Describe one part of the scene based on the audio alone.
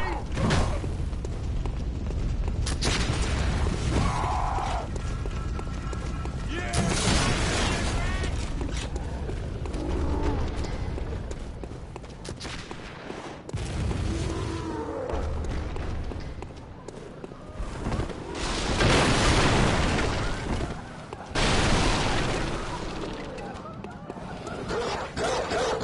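Footsteps tread on wet cobblestones.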